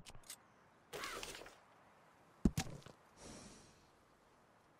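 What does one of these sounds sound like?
A paper map rustles as it unfolds.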